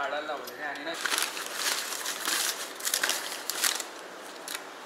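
A paper bag rustles and crinkles as it is opened.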